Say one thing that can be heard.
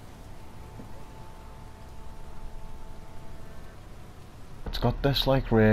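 Rain patters softly and steadily.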